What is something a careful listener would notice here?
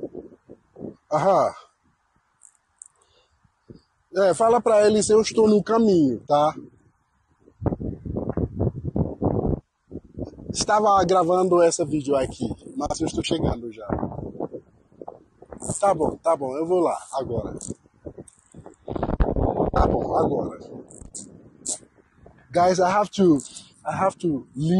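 A man talks with animation into a close microphone, outdoors.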